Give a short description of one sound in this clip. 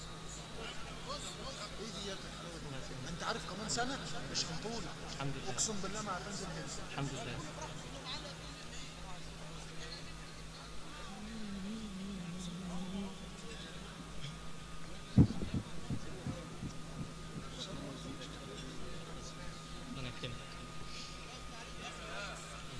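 A crowd of men chatter and murmur.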